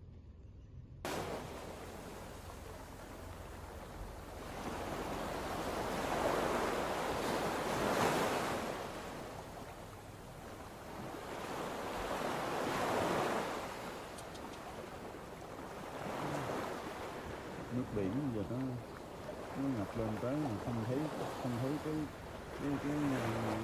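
Floodwater rushes past in loud, rising and falling surges.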